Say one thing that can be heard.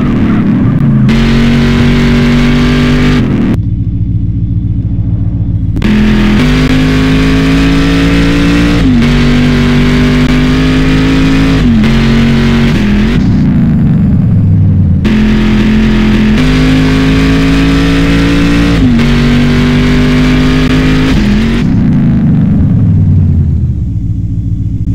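A car engine revs hard, climbing and dropping as it shifts through gears.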